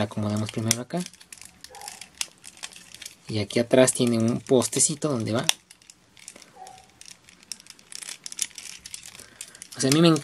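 Plastic toy parts click and snap as they are handled.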